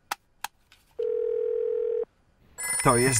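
A telephone gives a steady beeping tone.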